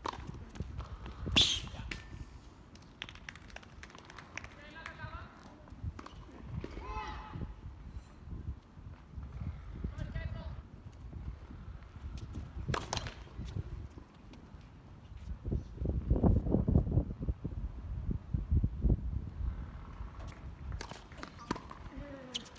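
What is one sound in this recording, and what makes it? A tennis ball is struck sharply by a racket.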